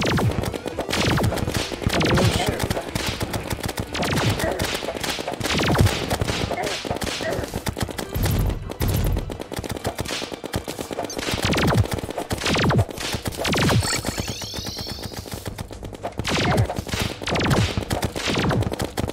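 Game weapons fire in rapid bursts.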